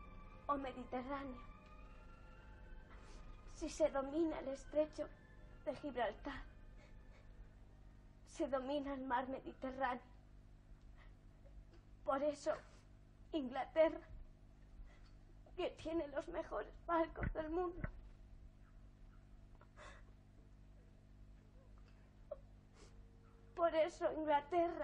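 A young girl speaks close by in a tearful, pleading voice, in short bursts with pauses.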